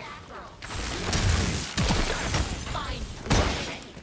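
Ice shatters with a sharp crash.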